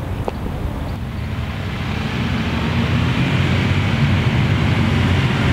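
Several motorcycle engines rumble and idle close by.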